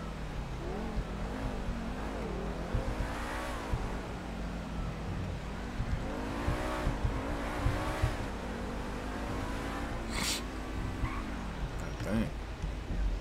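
A car engine revs and roars as the car speeds up and slows down.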